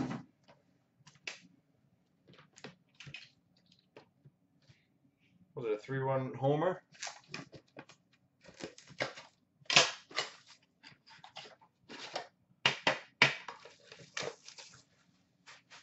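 Boxed packs clack softly as they are stacked and set down.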